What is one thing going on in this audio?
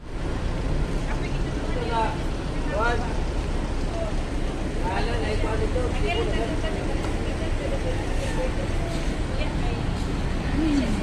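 A young woman talks softly and close.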